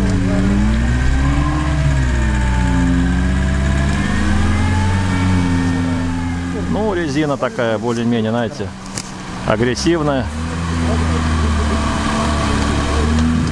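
A car engine revs and strains loudly, rising and falling in pitch.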